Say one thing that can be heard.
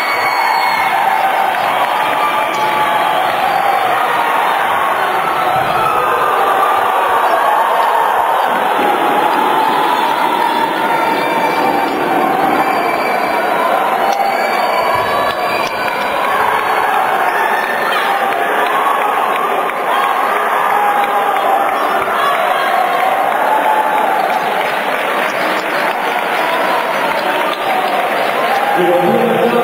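A crowd cheers and shouts throughout a large echoing hall.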